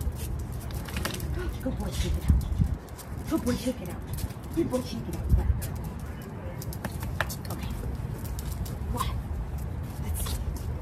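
A dog's claws click and tap on a concrete floor.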